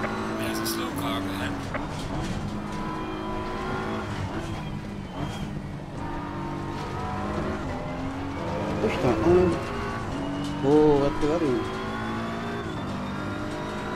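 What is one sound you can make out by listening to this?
A racing car engine roars steadily, rising and dropping in pitch as it shifts gears.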